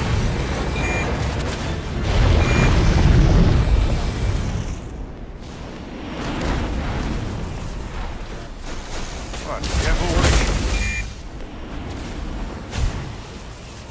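Magic blasts and spell effects boom and crackle in a game battle.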